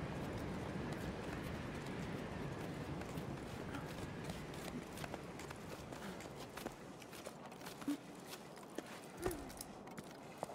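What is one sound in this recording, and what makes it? Hands and boots scrape and knock on rock during a climb.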